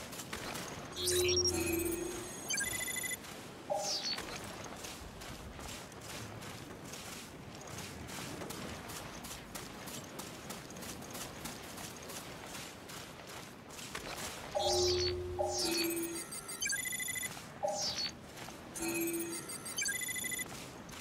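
An electronic scanner beeps and chirps.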